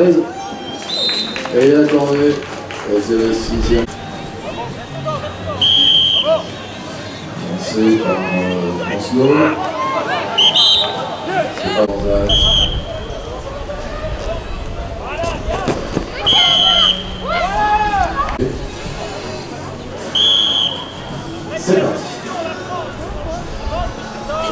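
Young riders shout and call to each other outdoors.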